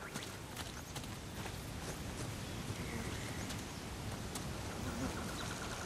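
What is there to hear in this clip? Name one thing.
Footsteps run quickly along a dirt path.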